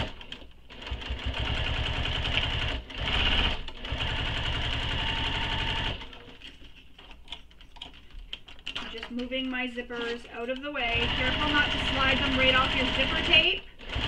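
A sewing machine whirs steadily in bursts.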